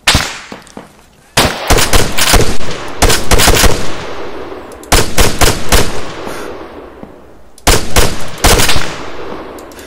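Rifle shots fire in quick bursts, each burst echoing far across open ground.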